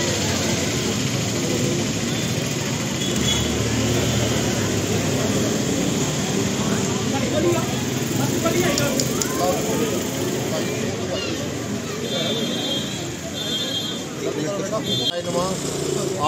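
A crowd murmurs and chatters in a busy street.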